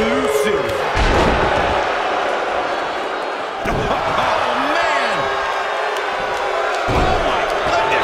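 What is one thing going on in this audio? A body slams down hard onto a wrestling mat with a heavy thud.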